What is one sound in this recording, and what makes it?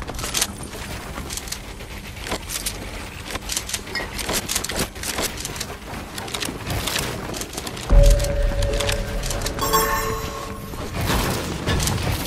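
Wooden and stone walls snap into place in quick clicks.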